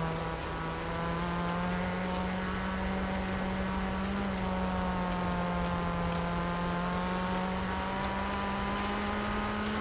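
Tyres crunch and rumble over gravel.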